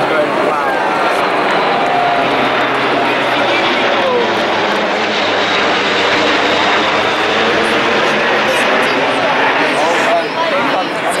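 A large propeller aircraft drones overhead.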